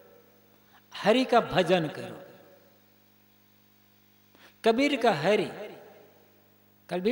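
A man chants a short melodic phrase in an echoing hall, with pauses between phrases.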